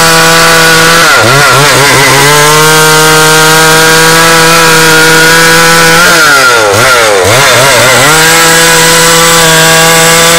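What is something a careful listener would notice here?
A chainsaw engine runs loudly close by, its pitch dropping and picking back up twice.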